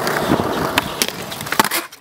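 A skateboard grinds along a concrete ledge.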